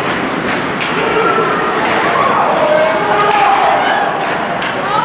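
A crowd of spectators shouts and cheers in an echoing arena.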